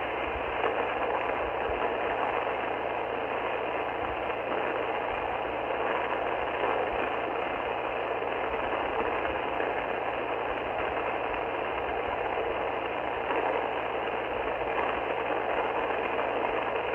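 A radio receiver hisses with steady static from its loudspeaker.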